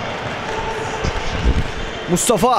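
A basketball bounces on a wooden court in an echoing hall.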